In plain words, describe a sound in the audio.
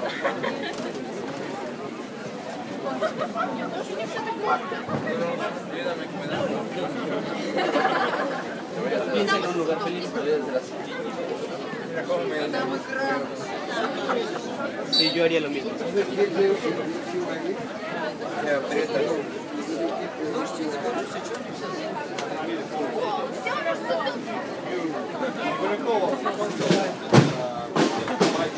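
Rain patters on umbrellas.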